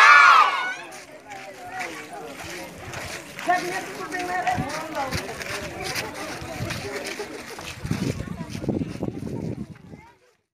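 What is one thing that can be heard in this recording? A crowd of children chatter and call out outdoors.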